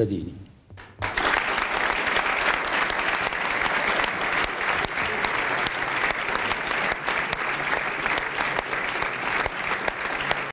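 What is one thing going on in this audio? A large audience applauds steadily in an echoing hall.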